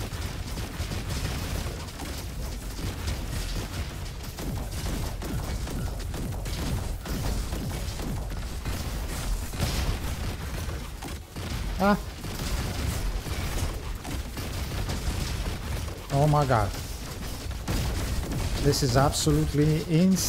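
Rapid gunfire and blasts crackle continuously from a game.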